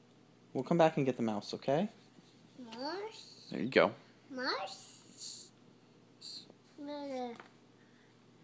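A toddler babbles and squeals close by.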